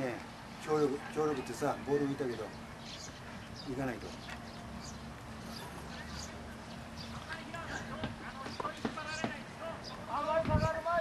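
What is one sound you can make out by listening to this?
Men shout to each other across an open field, some distance away.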